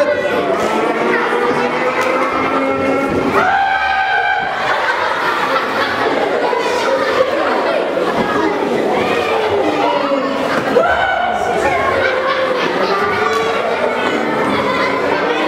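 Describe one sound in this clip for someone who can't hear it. A man sings loudly through a loudspeaker in an echoing hall.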